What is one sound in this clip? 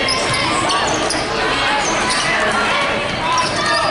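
A basketball bounces as it is dribbled.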